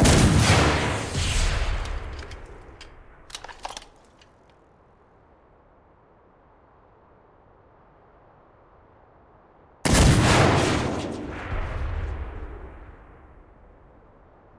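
A rifle fires loud shots that echo and roll away across open country.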